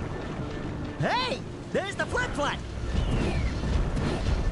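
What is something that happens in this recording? A magical sparkle effect chimes and swoops.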